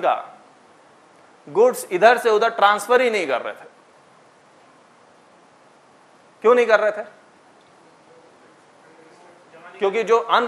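A man speaks calmly to an audience, with pauses between phrases.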